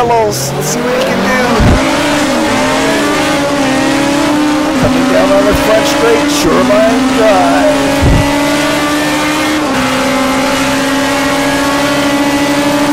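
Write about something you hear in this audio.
A racing car engine roars, rising in pitch and dropping sharply with each gear change.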